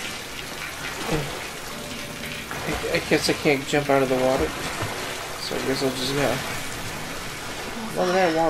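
Water sloshes and splashes as someone wades through it.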